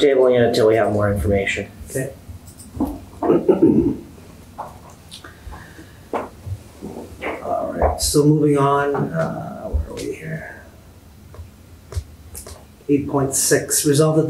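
Middle-aged men speak calmly through microphones.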